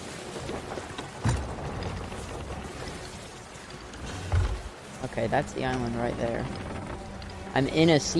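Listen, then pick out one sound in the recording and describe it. Waves crash and surge against a sailing ship.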